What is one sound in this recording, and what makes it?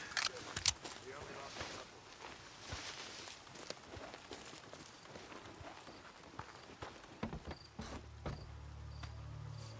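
Footsteps crunch softly on grass and boards.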